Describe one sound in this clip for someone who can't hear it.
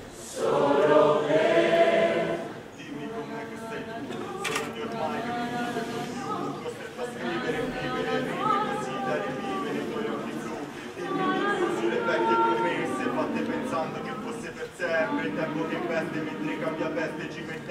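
A large mixed choir of young men and women sings together in a reverberant hall, swelling and softening.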